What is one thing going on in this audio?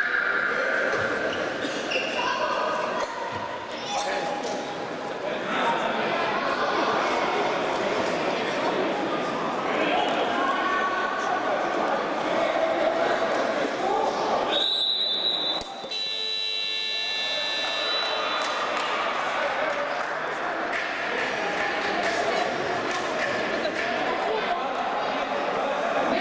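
Many voices of men and women chatter and call out in a large echoing hall.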